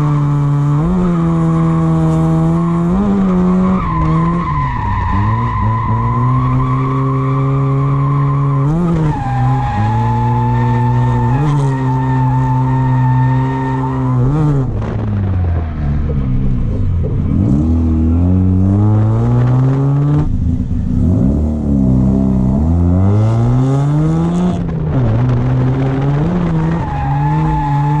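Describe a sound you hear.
A car engine roars loudly, revving up and down again and again.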